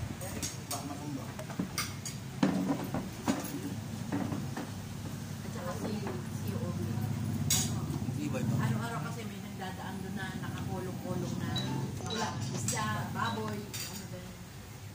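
Cutlery clinks against plates.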